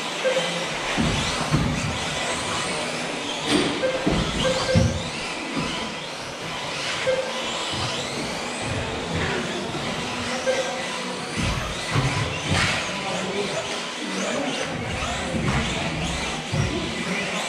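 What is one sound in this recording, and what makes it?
Race car wheels bump and clatter against track barriers.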